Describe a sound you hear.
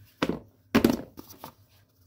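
Flour pours softly into a plastic bowl.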